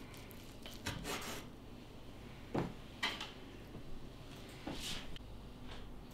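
Fingers lift crumbly slices onto a plate with soft clinks.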